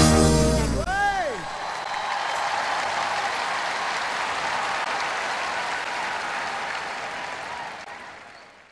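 A large crowd claps and cheers in a big echoing hall, then slowly quiets.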